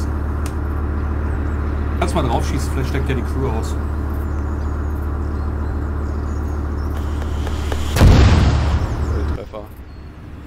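An armoured vehicle's engine rumbles low and steadily.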